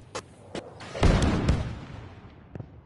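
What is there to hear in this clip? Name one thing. A grenade explodes.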